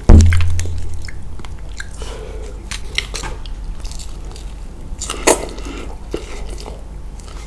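A man slurps noodles loudly, close by.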